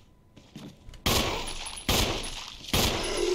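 Gunshots ring out in sharp bursts.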